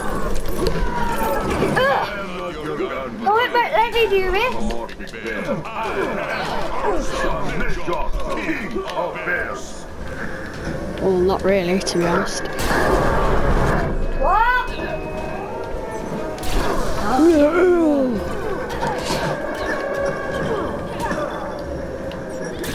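Punches and thumps land in a cartoonish brawl.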